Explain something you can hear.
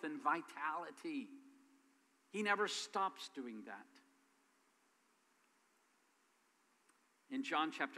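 A middle-aged man speaks with animation through a microphone in a reverberant hall.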